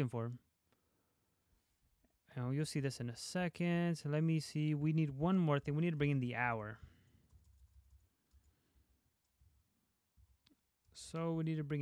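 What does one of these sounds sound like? A young man talks calmly and close to a microphone, with pauses.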